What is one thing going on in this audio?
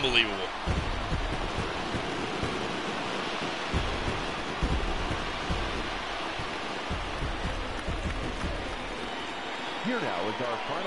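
A stadium crowd cheers and murmurs in a steady roar.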